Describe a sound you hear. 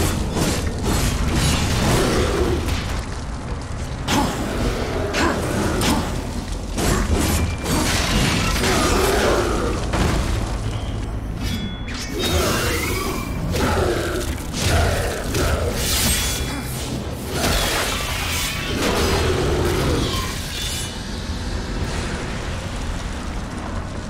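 Fiery explosions burst and roar.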